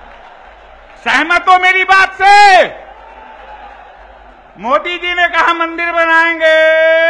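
An elderly man chants loudly into a microphone over loudspeakers, in long drawn-out calls.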